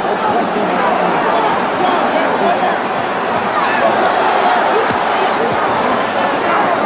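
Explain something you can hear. A large crowd cheers and roars loudly throughout.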